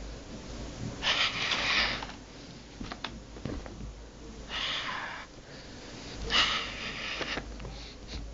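A cat scratches and paws at a rustling surface in short bursts.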